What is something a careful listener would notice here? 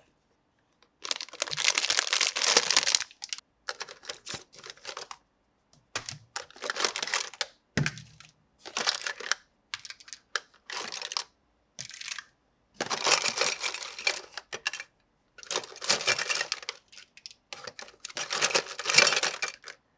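Plastic toys rattle and clatter as hands rummage through them.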